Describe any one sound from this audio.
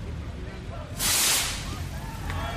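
A loud bang bursts out once.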